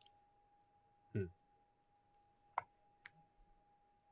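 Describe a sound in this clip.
Playing cards are laid down on a table with a soft tap.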